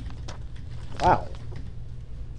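A man exclaims briefly into a microphone.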